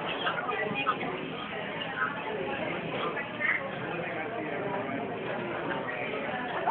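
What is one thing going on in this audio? A crowd of people chatters in a room that echoes.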